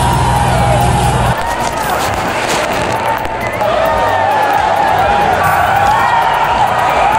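A large crowd shouts and clamours outdoors.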